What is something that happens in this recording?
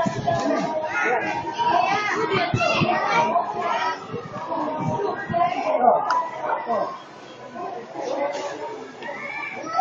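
A crowd of adults and children chatter close by.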